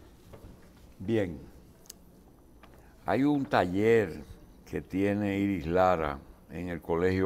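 An elderly man speaks calmly and clearly, close to a microphone.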